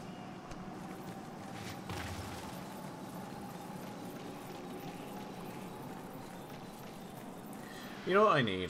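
Armoured footsteps run across soft ground.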